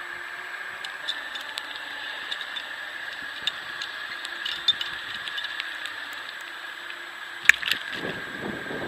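A metal clip clicks.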